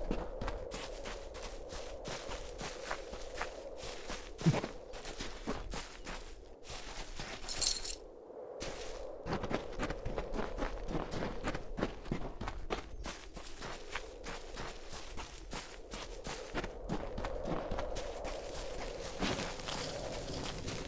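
Quick footsteps thud on grass.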